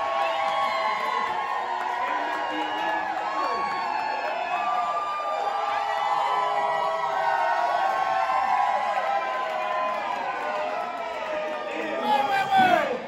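A crowd cheers and shouts loudly in a large room.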